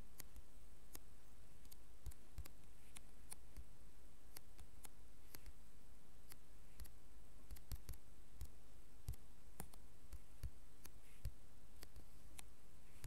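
Blocks break with crunching taps, over and over.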